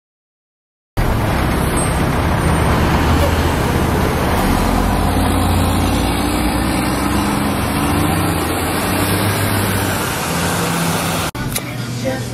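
City traffic rumbles steadily nearby outdoors.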